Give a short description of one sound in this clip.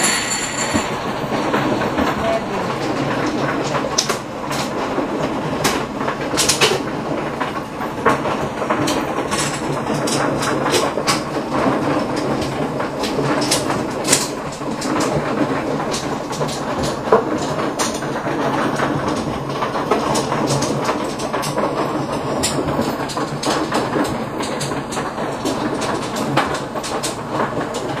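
Plastic game tiles clack and rattle as hands shuffle and stack them on a table.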